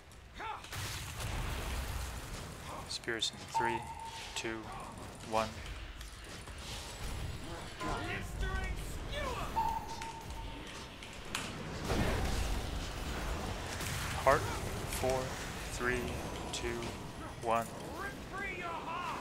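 Spell effects and combat sounds from a video game battle crackle and ring out.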